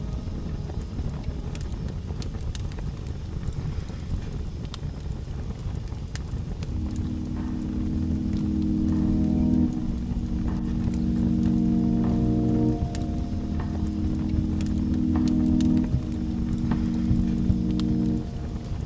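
A fire crackles and roars softly.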